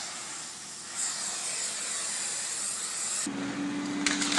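A cutting torch hisses against a steel beam.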